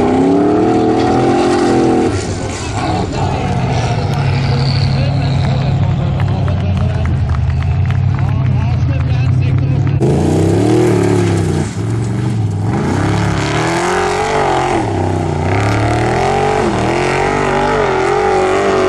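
An off-road vehicle's engine roars and revs hard as it climbs.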